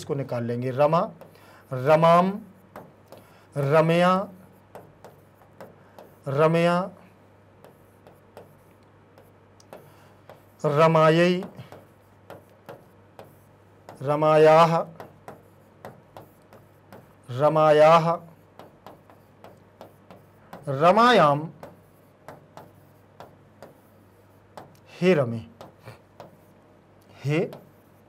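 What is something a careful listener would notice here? A marker taps and scratches on a whiteboard.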